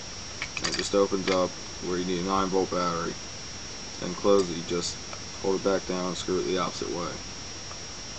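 A young man speaks close by, calmly.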